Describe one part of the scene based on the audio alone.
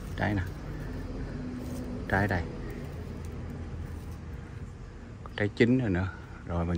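Leaves rustle softly as a hand brushes through a small shrub.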